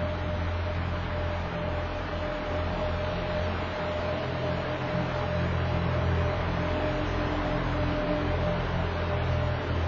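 An ice resurfacing machine hums steadily as it drives over the ice.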